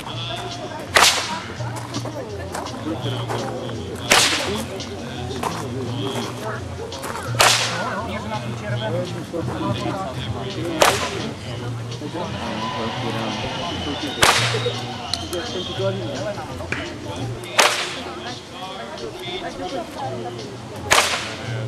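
Whips crack sharply outdoors, again and again at even intervals.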